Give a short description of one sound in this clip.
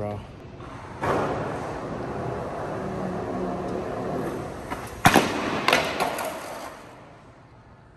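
Skateboard wheels roll and rattle along a hard floor, echoing in a large hall.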